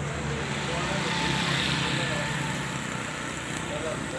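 A motorcycle passes by on a nearby road.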